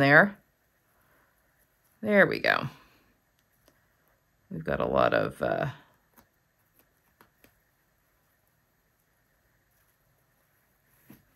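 A needle and thread pull softly through fabric.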